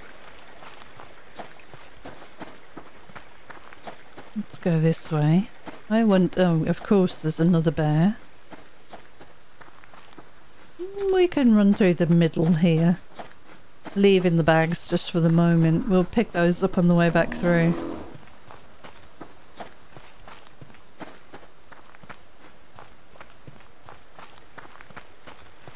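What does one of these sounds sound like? Footsteps rustle through dry grass at a steady walking pace.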